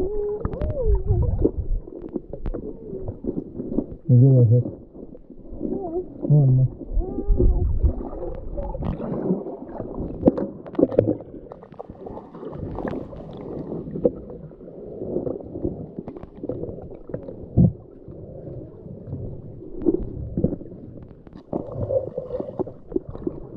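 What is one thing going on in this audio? Water gurgles and sloshes, heard muffled from underwater.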